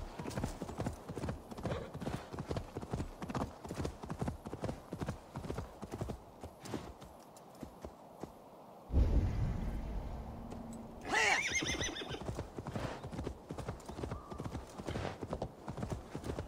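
A horse's hooves thud rhythmically as it gallops over grass.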